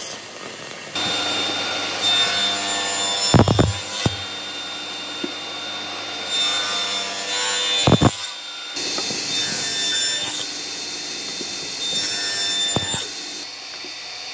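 A table saw blade whirs and cuts through wood.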